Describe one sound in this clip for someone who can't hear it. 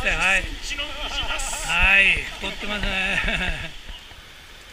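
Several men cheer and talk happily close by.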